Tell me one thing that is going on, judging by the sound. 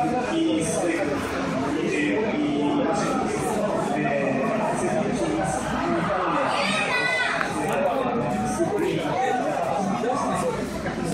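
A crowd of people chats in a large, echoing indoor hall.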